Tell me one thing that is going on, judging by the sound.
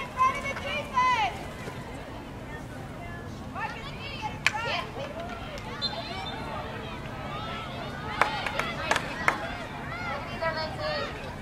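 Young women shout to each other across an open field outdoors.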